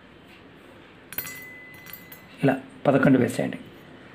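Fingers crush and scrape something inside a small metal pot.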